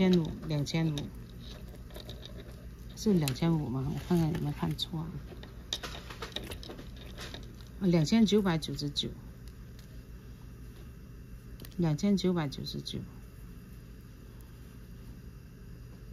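Metal jewellery chains clink softly as they are handled.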